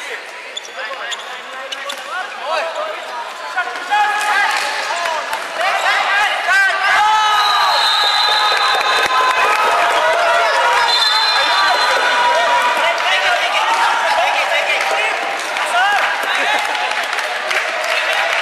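Young players shout and call out across a large echoing hall.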